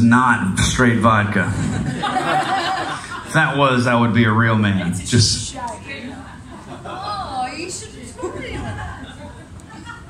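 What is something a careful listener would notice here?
A man speaks into a microphone over a loudspeaker system.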